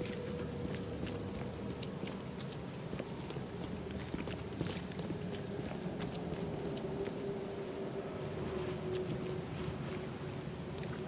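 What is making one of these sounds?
Footsteps tread slowly on cobblestones.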